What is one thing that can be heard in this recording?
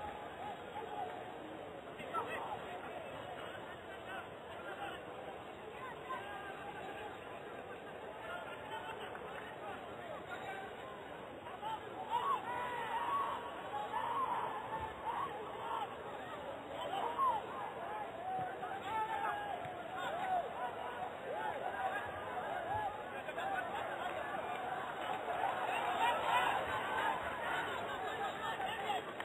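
A distant crowd murmurs and cheers in a large open stadium.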